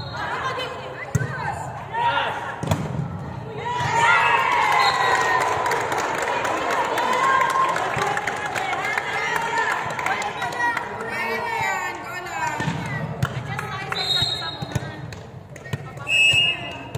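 Many young women chatter and call out in a large echoing hall.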